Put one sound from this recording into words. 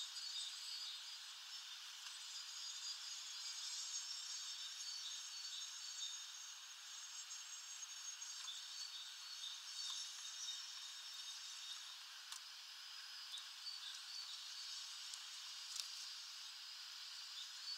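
Light rain patters steadily outdoors.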